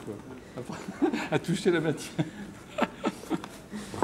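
An older man laughs.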